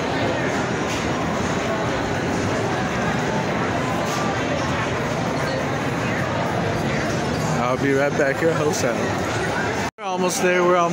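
A crowd murmurs and chatters in a large noisy hall.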